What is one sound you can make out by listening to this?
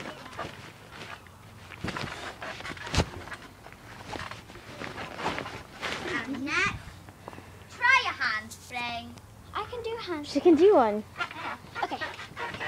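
A trampoline mat thumps and creaks under bouncing feet.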